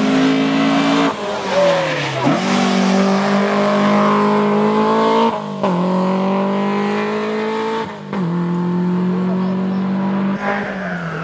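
A four-cylinder rally car engine revs hard, shifting up through the gears as it accelerates.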